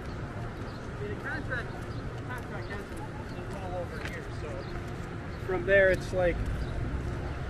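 Adults talk and chatter nearby outdoors.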